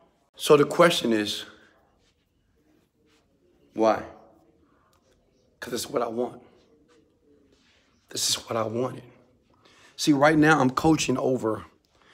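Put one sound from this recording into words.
A young man speaks calmly and close to the microphone, in short bursts with pauses.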